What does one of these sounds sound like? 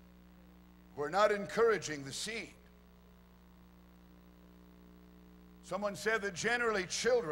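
A middle-aged man speaks calmly into a microphone, heard through a loudspeaker, pausing between phrases.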